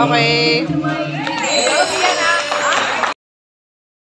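A man sings into a microphone over loudspeakers in a large echoing hall.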